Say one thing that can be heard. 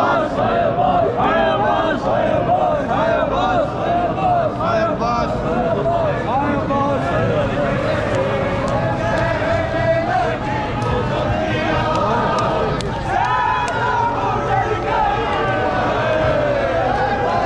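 Many hands beat rhythmically on chests.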